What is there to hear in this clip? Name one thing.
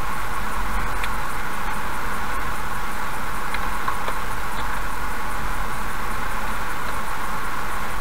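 Tyres hum steadily on a wet road as a car drives along.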